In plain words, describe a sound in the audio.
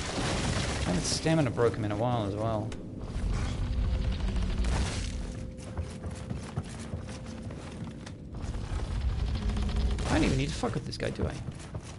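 Footsteps creak across wooden floorboards.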